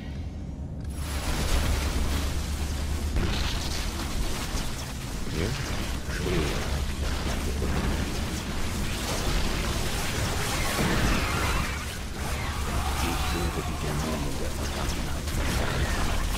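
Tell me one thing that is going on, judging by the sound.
Game units clash in battle with laser fire and explosions.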